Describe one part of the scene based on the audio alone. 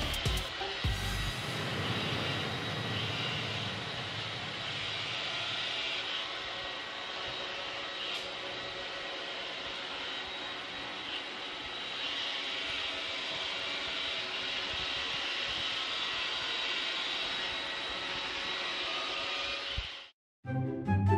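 A robot vacuum whirs as it moves across a wooden floor.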